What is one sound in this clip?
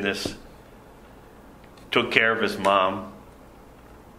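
An elderly man speaks slowly and earnestly into a microphone.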